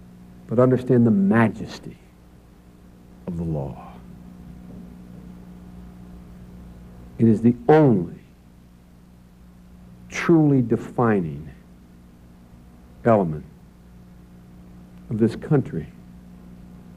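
A middle-aged man speaks slowly and deliberately into a microphone, with long pauses.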